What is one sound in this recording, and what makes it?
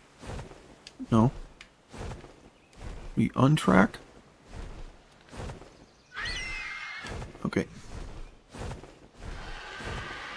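Large wings flap with heavy, regular whooshes.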